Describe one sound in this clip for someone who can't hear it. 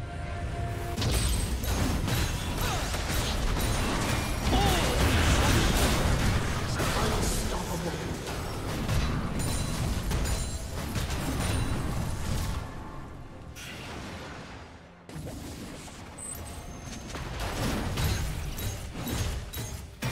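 Video game spell effects whoosh and crackle during a fight.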